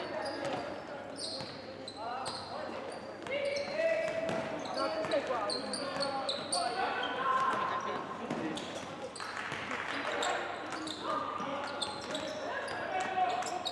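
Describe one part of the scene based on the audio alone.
A basketball thumps as it bounces on the court.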